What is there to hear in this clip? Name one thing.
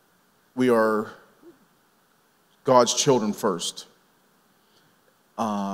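A man speaks calmly into a microphone, heard through loudspeakers, in short phrases with pauses.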